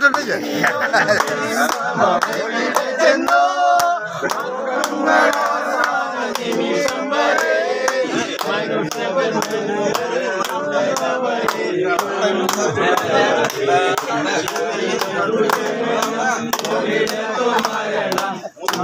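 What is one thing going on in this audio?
A group of men sing and shout loudly together close by.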